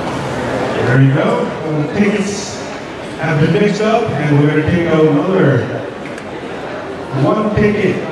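A man speaks loudly and announces to a crowd.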